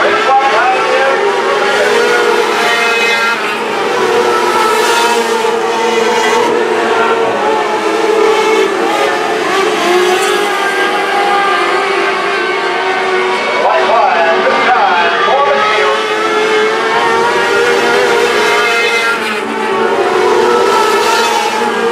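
Engines rise and fall in pitch as the cars pass close by.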